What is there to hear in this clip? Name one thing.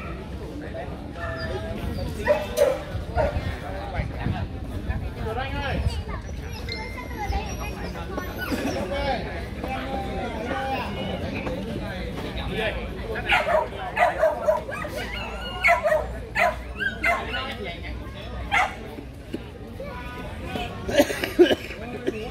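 A crowd of men chatter and call out nearby.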